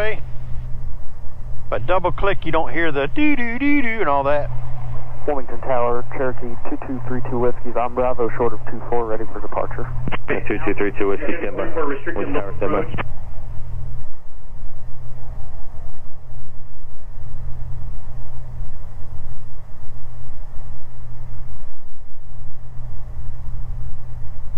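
A light aircraft's propeller engine drones steadily from inside the cabin.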